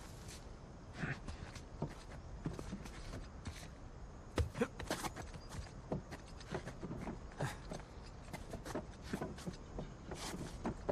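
A man grunts and breathes hard.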